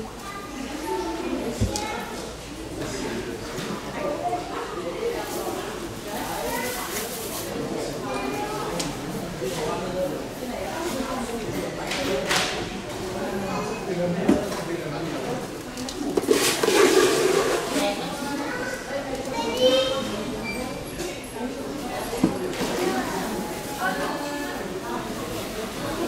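A man talks calmly and steadily close by.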